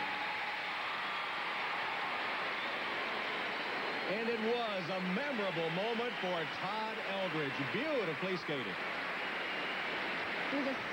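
A large crowd cheers and applauds steadily in a big echoing arena.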